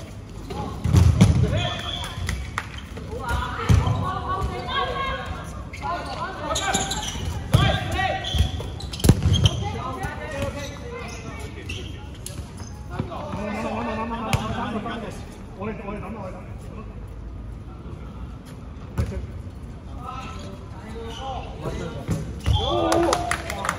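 Balls thud loudly against bodies and bounce on a hard floor in a large echoing hall.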